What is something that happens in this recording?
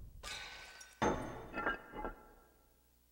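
A ceramic bowl clinks down onto a wooden table.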